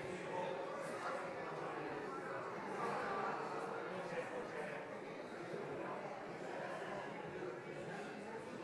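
A crowd of men and women chatter and greet one another in a large echoing hall.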